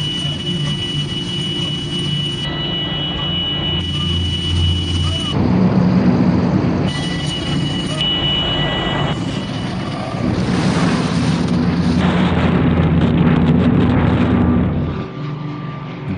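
An aircraft engine drones loudly from inside the cabin.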